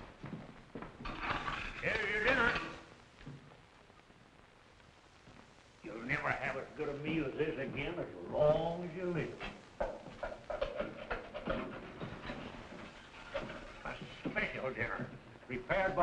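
Men talk nearby.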